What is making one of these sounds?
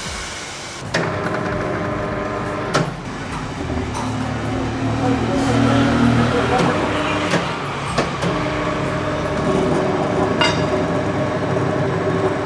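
A tyre-changing machine hums and turns a wheel.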